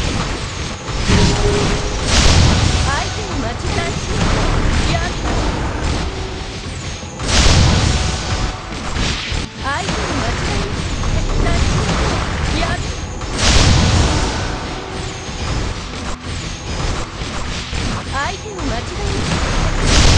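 Spell blasts and explosions crash and boom in bursts.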